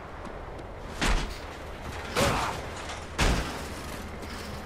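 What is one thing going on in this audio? A heavy hammer smashes loudly into metal several times.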